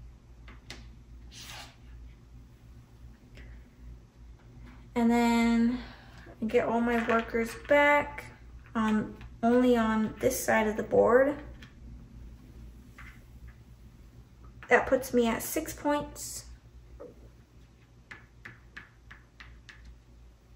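Small game pieces click and tap onto a board.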